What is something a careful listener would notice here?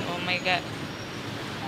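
A woman speaks briefly and softly, close to the microphone.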